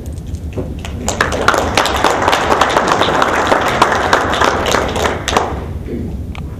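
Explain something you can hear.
A crowd of people clap their hands in a room.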